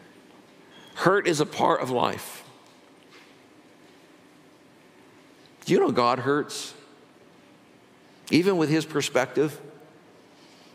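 An older man speaks slowly through a microphone in a large echoing hall, with long pauses.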